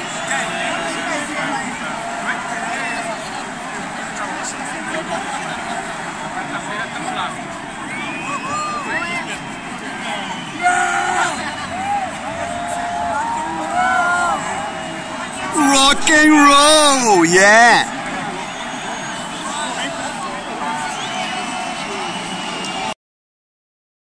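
A large crowd cheers and screams loudly at a concert.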